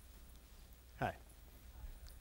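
A man says a few words into a microphone on a stage.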